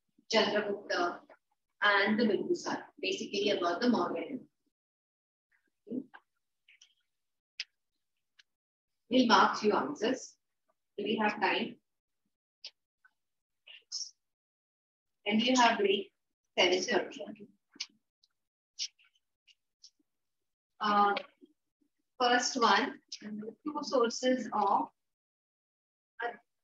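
A woman speaks clearly to a small group, pausing between phrases, close by.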